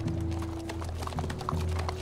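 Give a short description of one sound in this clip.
A horse's hooves clop slowly on hard ground.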